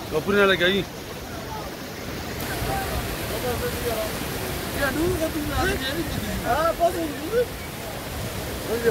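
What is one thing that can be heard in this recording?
Several men talk nearby, outdoors.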